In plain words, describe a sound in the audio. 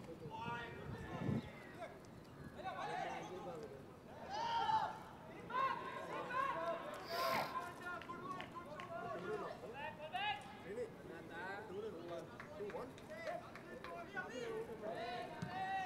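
Young men shout and call to each other across an open field.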